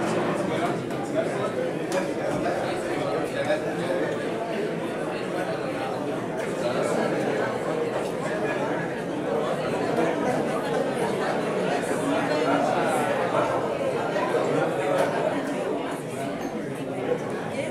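A crowd of men and women chatters in a large echoing hall.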